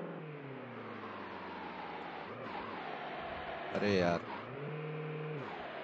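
A sports car engine revs up and down.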